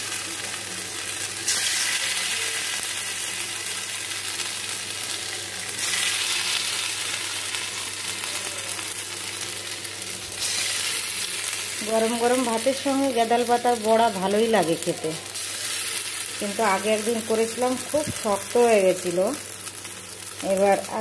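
Hot oil sizzles in a wok as spice paste is dropped in.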